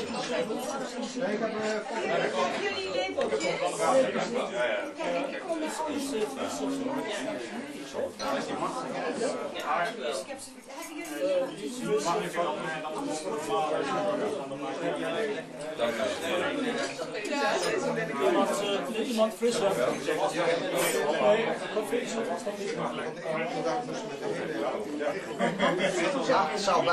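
A crowd of men and women chatter and laugh nearby.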